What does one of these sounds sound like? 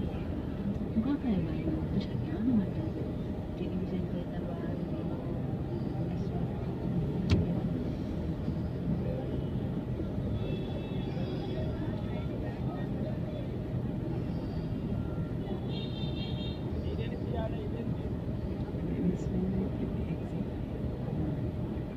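An auto-rickshaw engine idles and putters close by.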